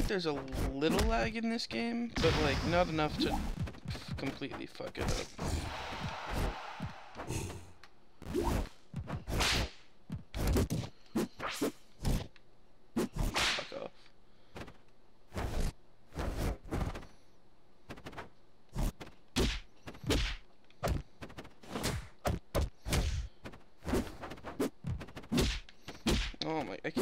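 Video game fighting sounds thump and whoosh in quick bursts.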